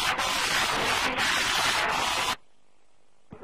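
A crowd of men shouts loudly.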